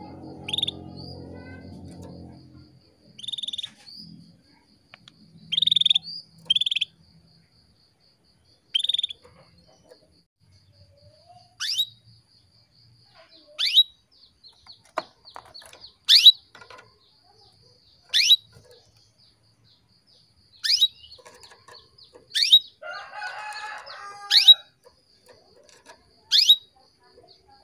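A small bird chirps and calls in short, sharp bursts close by.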